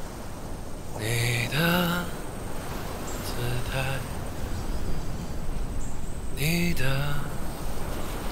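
A young man sings closely into a microphone.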